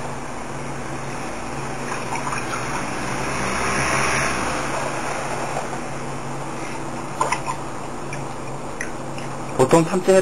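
Water splashes and sloshes in a metal pan.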